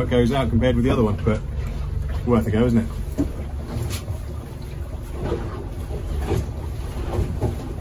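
Wind buffets outdoors over open water.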